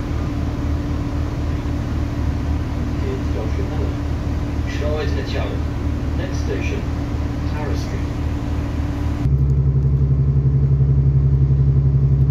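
A train rumbles and hums steadily, growing louder toward the end.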